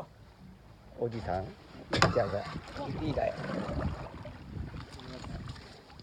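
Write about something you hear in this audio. A fish splashes at the water's surface as it is netted.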